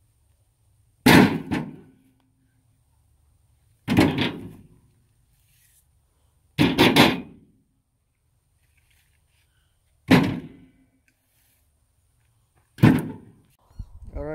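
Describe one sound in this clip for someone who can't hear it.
Wooden logs thud heavily as they are tossed onto a pile.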